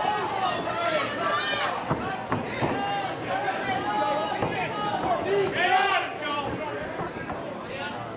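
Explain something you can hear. A crowd shouts and cheers loudly in an echoing hall.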